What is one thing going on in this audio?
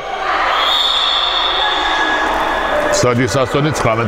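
Spectators cheer and shout in a large echoing hall.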